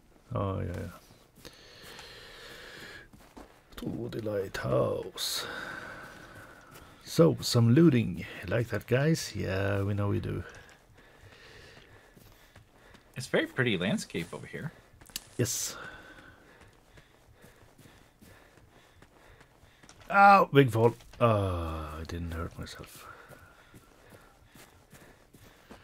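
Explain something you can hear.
Footsteps crunch over dry grass and rock.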